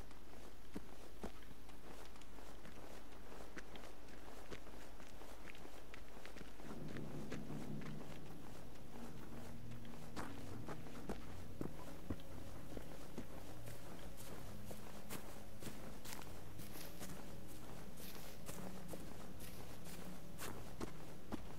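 Footsteps crunch on a path outdoors.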